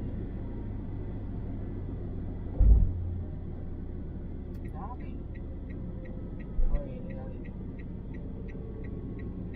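A car engine hums steadily from inside.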